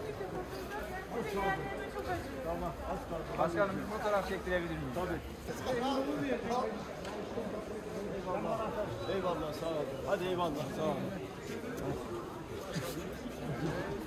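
Elderly men talk with animation close by.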